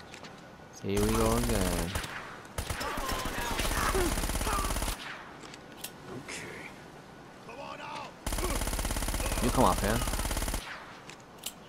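A pistol fires several shots in quick bursts.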